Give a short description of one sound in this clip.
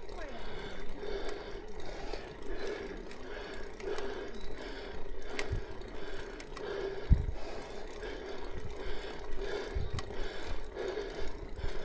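Footsteps tread steadily along a cobbled path outdoors.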